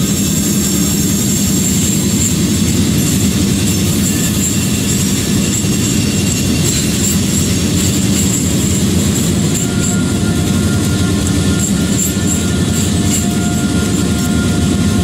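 Train wheels clatter along the rails.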